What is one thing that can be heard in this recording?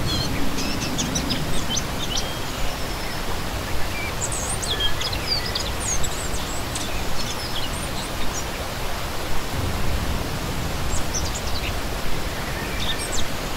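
A shallow stream rushes and gurgles steadily over rocks.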